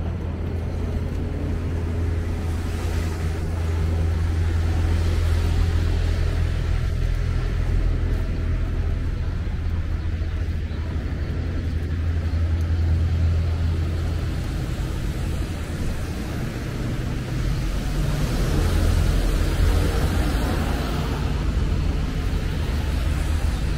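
Car tyres hiss past on a wet road.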